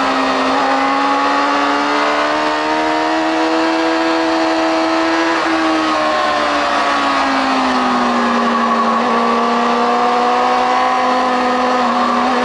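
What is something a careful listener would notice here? Wind rushes loudly past at speed.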